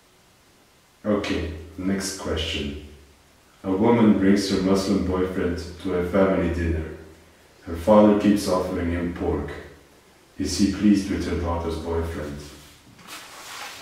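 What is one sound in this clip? A young man speaks calmly and close by into a headset microphone.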